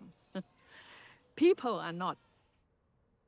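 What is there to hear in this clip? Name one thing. An elderly woman speaks warmly and with animation, close to a microphone.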